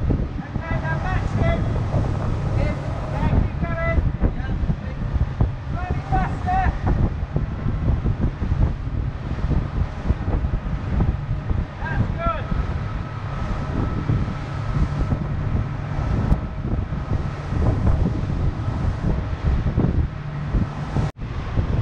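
Water rushes and splashes along a boat's hull.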